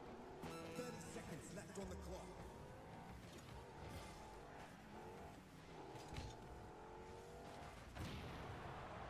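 A video game car engine hums and revs.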